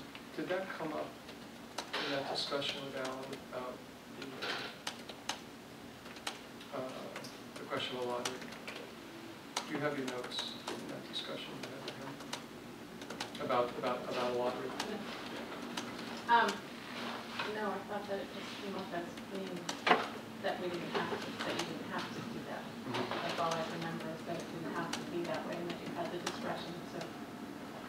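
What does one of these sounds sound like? A man speaks calmly into a microphone, heard in a room with slight echo.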